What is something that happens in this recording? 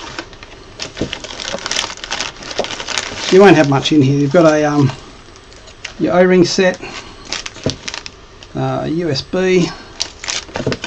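Cardboard and plastic packaging rustle and crinkle.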